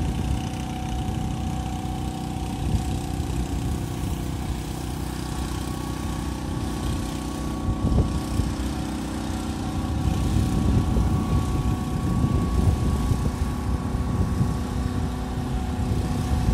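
An off-road vehicle's engine runs with a steady drone.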